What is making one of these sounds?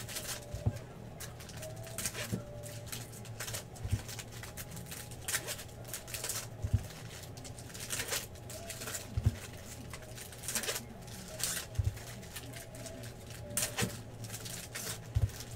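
Foil wrappers tear open.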